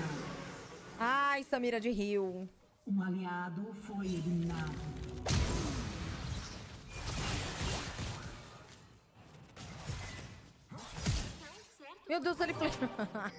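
A young woman talks close into a microphone with animation.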